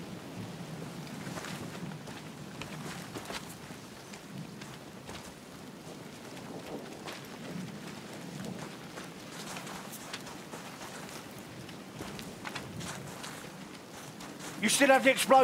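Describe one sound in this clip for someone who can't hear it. Boots run on gravel and rock.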